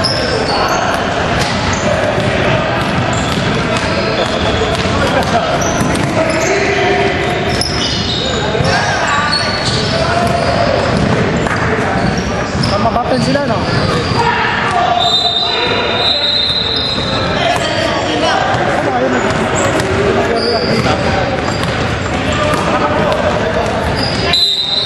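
Voices of a crowd of spectators and players chatter and call out in a large echoing hall.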